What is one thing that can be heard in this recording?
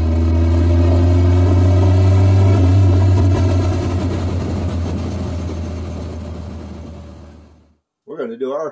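A car engine roars steadily, then fades away.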